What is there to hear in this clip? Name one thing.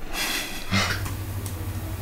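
Fingers tap on a laptop keyboard.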